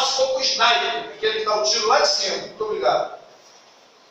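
A man speaks loudly and with animation into a microphone in an echoing room.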